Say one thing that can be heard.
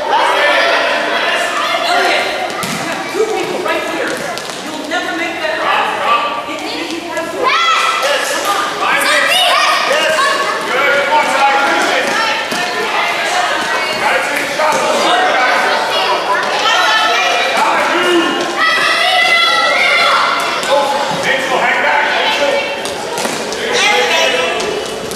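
Children and adult spectators shout and cheer in a large echoing hall.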